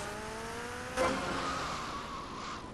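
A motorcycle lands hard with a loud thud.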